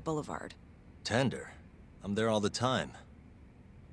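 A young man answers in a low, calm voice.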